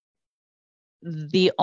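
A woman speaks calmly through a headset microphone over an online call.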